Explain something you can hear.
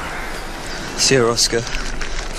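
A man speaks into a handheld radio.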